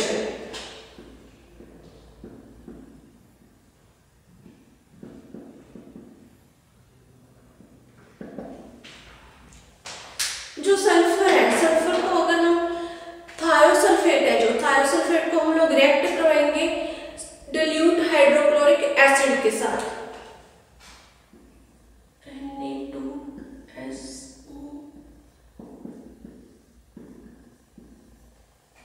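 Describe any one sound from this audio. A woman speaks calmly and clearly into a nearby microphone, explaining.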